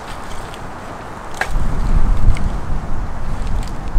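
Sticks of firewood knock together as they are stacked.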